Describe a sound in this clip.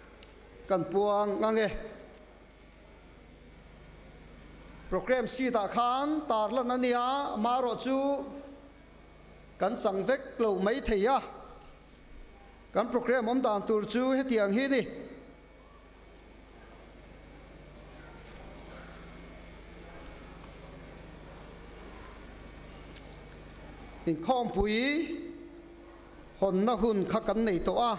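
A man speaks with animation into a microphone, in bursts with pauses, in a reverberant hall.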